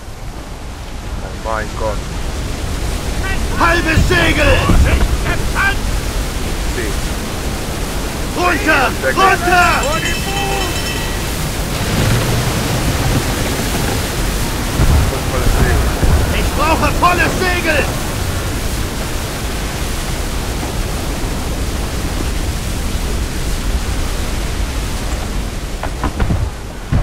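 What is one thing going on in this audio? Strong wind howls steadily through a ship's rigging.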